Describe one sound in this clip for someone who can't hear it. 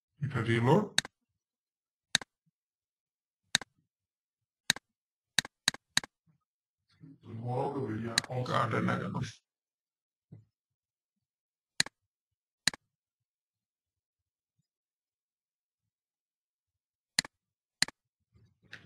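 A computer mouse clicks sharply several times.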